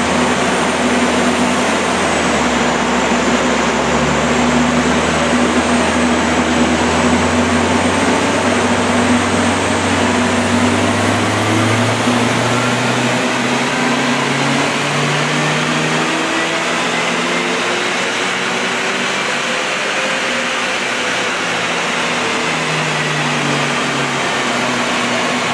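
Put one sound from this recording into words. A car engine runs loudly, its pitch shifting up and down.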